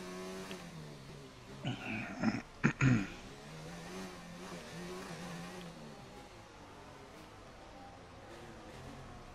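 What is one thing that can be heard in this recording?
A racing car engine whines and changes pitch as the car speeds up and slows down.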